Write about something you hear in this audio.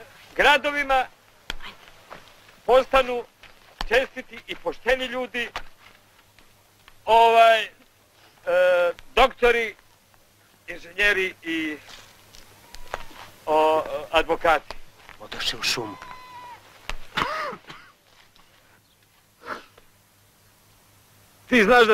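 A middle-aged man speaks slowly and solemnly outdoors, with long pauses.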